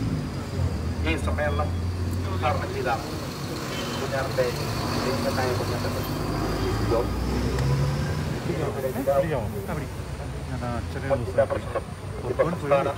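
A second man speaks with animation into a microphone.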